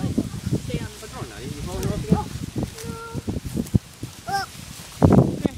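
A toddler babbles and whines close by.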